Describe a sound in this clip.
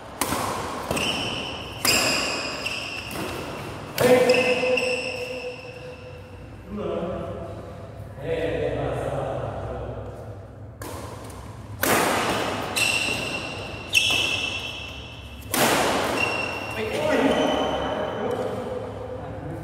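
Sports shoes squeak sharply on the court floor.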